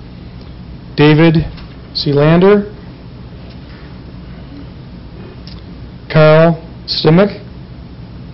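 A man speaks into a microphone in short phrases.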